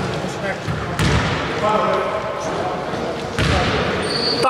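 A basketball bounces on the court with a hollow thud.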